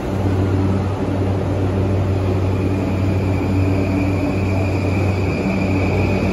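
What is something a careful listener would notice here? An electric train hums steadily and pulls away with a rising motor whine.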